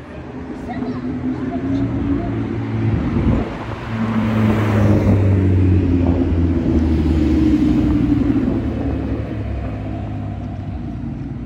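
A sports car engine rumbles deeply at low speed and revs as it passes close by.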